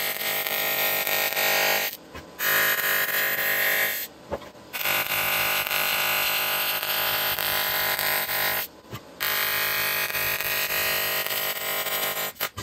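A welding arc buzzes and crackles loudly, with short pauses.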